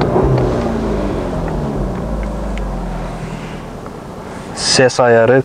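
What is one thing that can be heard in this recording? A car engine idles with a low hum and slowly dies away.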